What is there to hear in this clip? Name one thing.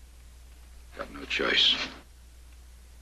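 A man answers in a hushed, strained voice.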